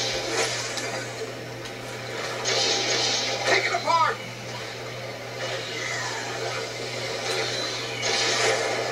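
Energy blasts hiss and crackle through a television speaker.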